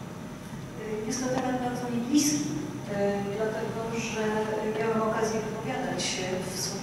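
A woman speaks into a microphone in a room with a slight echo.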